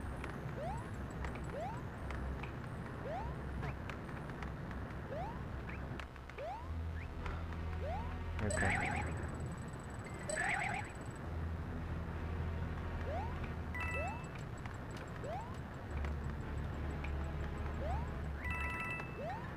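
Upbeat video game music plays throughout.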